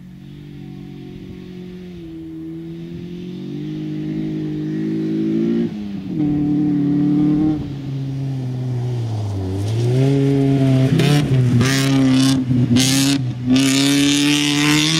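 A rally car engine revs hard, growing louder as the car approaches and shifts gears.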